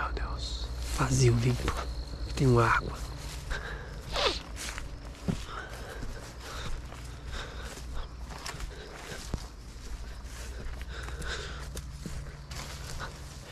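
Footsteps rustle through dry grass.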